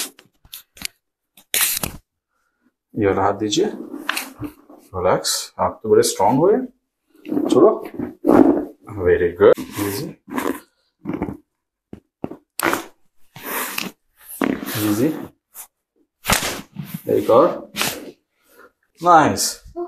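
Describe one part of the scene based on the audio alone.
Joints pop and crack sharply.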